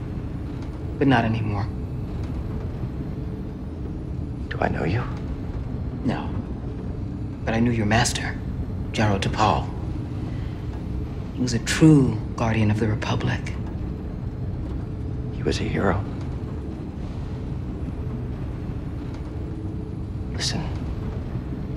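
A young man answers quietly and calmly, close by.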